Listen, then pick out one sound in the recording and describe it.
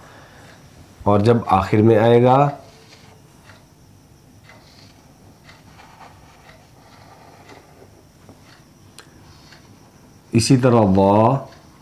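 A man speaks clearly and slowly up close, in short phrases.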